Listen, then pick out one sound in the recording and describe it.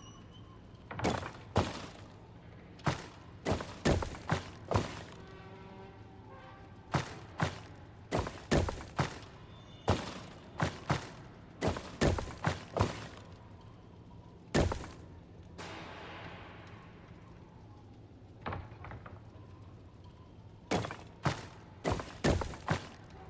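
Heavy stone tiles slide and clunk into place.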